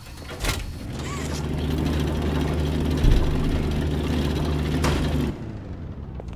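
A heavy metal shutter rumbles and rattles as it rolls open.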